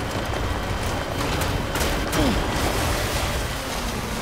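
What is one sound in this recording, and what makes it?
Water splashes under a truck's wheels.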